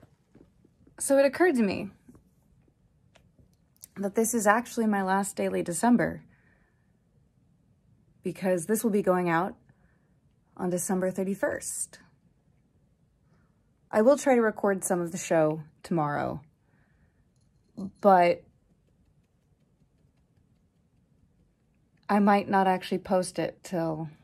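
A young woman talks casually, close by, in short bursts with pauses.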